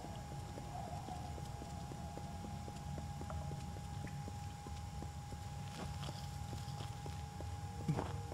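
Footsteps thud quickly and evenly on hard ground as someone runs.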